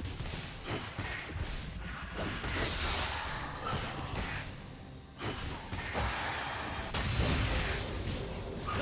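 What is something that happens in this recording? Sword clashes and spell blasts of a video game battle crackle and thump.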